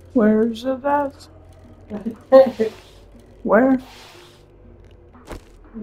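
A bicycle rolls over snow.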